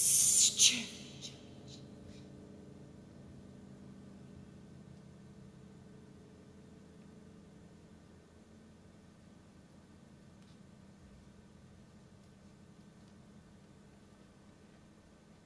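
A piano chord rings out softly and slowly fades.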